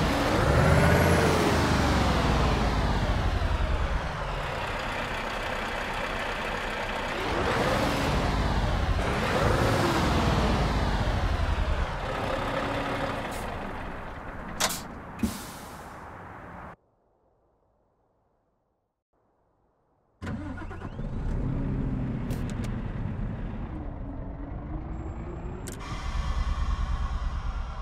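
A heavy truck engine rumbles and revs up and down.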